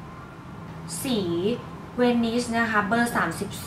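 A young woman speaks brightly and close to the microphone.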